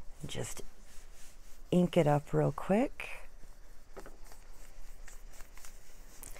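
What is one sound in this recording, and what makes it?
A foam applicator softly dabs and rubs on paper.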